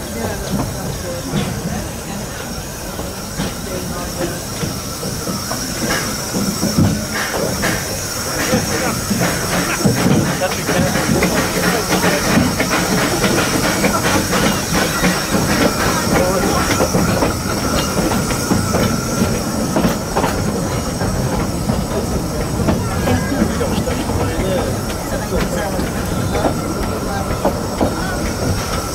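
Carriage wheels click and clatter over rail joints and points.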